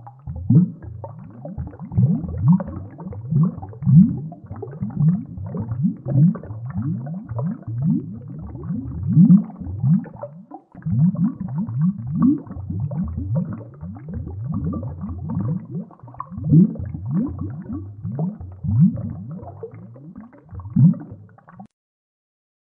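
Bubbles from a diver's breathing gurgle and rumble underwater in repeated bursts.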